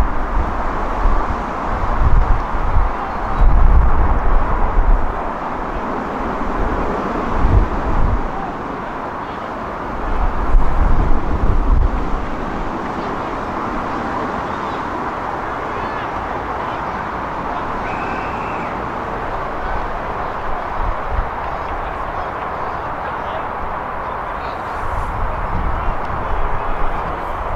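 Young men shout and call to each other in the distance.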